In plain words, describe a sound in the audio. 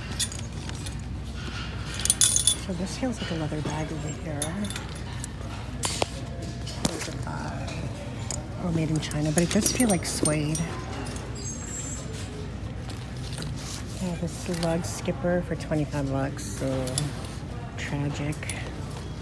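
Handbags rustle as a hand pushes through them.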